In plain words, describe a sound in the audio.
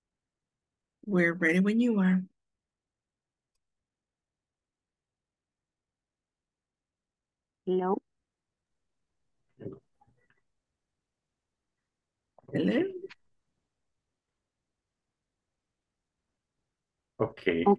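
A woman speaks briefly through an online call, in short bursts with pauses.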